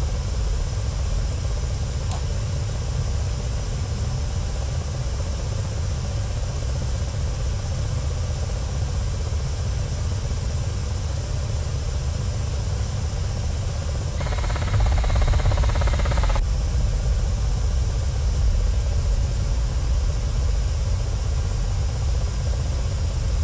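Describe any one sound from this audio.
A helicopter engine and rotor drone steadily, heard from inside the cockpit.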